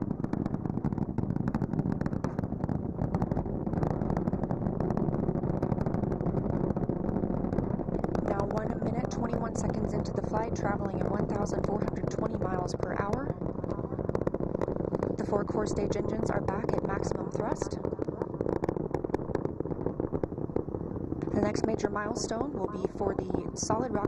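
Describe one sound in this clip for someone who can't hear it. A rocket engine roars with a deep, steady rumble.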